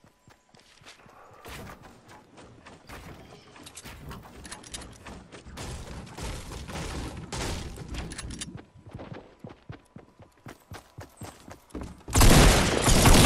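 Footsteps thud quickly across wooden planks.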